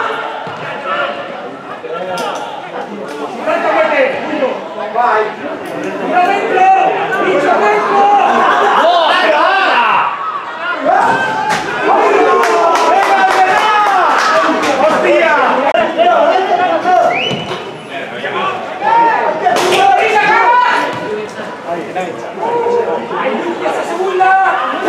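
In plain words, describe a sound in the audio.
Men in a crowd shout and cheer close by.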